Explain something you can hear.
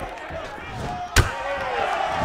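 A kick lands with a sharp slap on a fighter's body.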